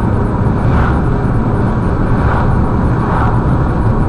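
An oncoming car whooshes past.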